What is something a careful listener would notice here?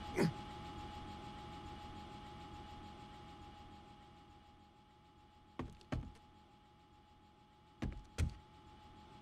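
Footsteps knock on wooden ladder rungs.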